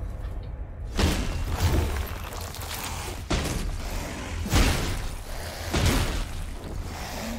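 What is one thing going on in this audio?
Blades strike and clang in a fight.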